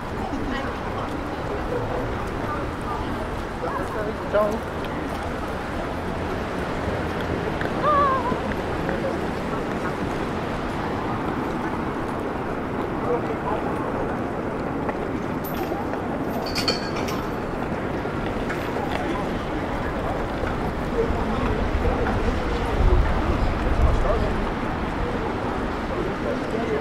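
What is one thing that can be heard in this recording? A crowd murmurs across a wide outdoor square.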